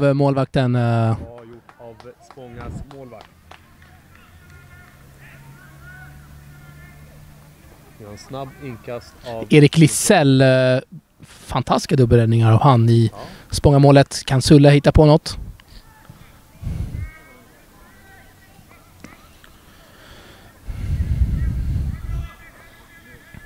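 Football players call out to each other across an open field in the distance.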